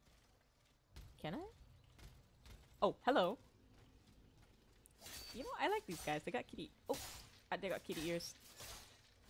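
Swords swing and strike in a fight.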